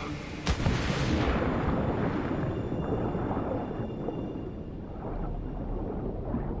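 Muffled underwater rumbling surrounds a swimmer.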